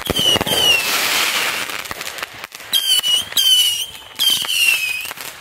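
Fireworks whistle shrilly in short bursts, each slightly falling in pitch.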